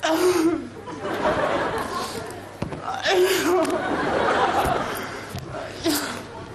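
An audience laughs.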